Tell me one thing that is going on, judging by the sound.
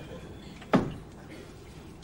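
A wooden wardrobe door knocks as it swings open.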